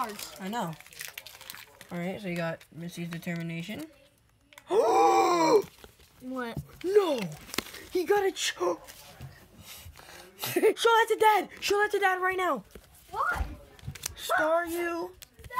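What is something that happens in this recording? Trading cards rustle and slap softly as a hand shuffles through them.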